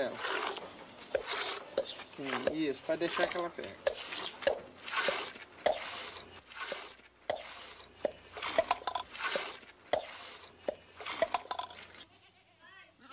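Milk squirts into a metal pail in quick spurts.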